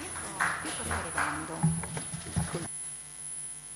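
A woman speaks quietly close to a microphone.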